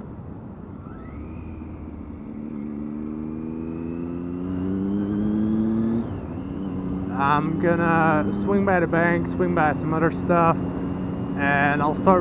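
A motorcycle engine revs up steadily, then drops in pitch as it shifts gear.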